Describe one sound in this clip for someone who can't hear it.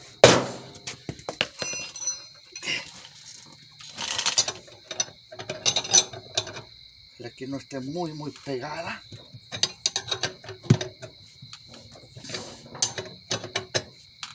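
Metal tools clink and rattle against a wheel.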